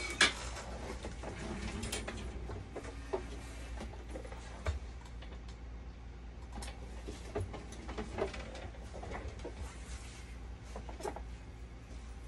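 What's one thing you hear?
Plastic parts click and knock as a man works inside a dialysis machine.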